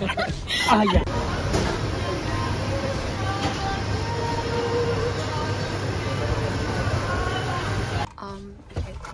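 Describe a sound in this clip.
A room echoes with a steady hum of distant voices and clatter.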